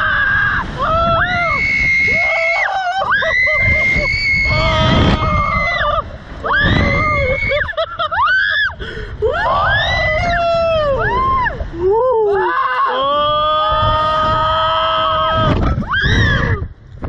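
A man yells and screams loudly up close.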